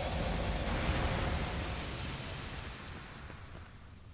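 Footsteps run across a stone floor.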